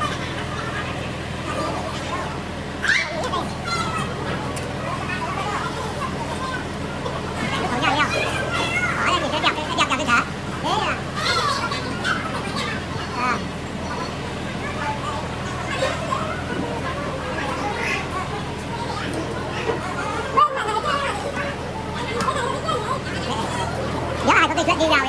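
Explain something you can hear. Women chatter and talk with animation close by.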